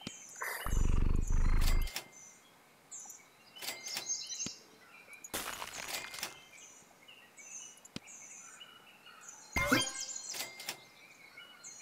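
Cartoonish game sound effects chime, pop and whoosh in short bursts.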